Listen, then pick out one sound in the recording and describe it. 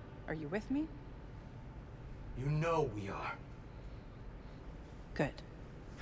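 A young woman speaks briefly and with surprise, close by.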